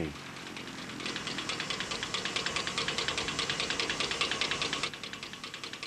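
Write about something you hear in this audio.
A hand pump clicks rapidly as fuel is pumped.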